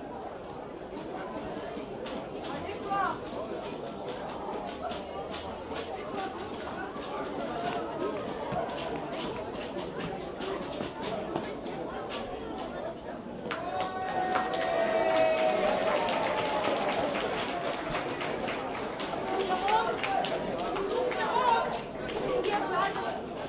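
A crowd of spectators murmurs and chatters in the distance outdoors.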